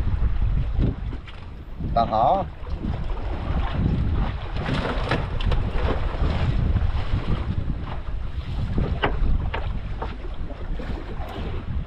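Wind blusters across the open sea.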